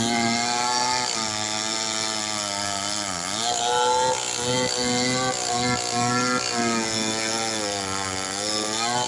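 A chainsaw roars loudly, its engine rising and falling as it cuts through wood.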